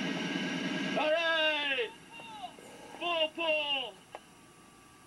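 A man shouts with animation close by.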